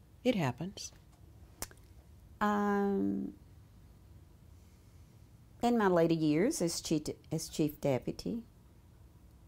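An elderly woman speaks calmly and close to a microphone, with pauses.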